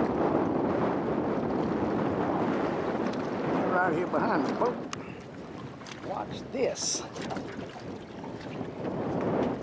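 Choppy water splashes and laps nearby.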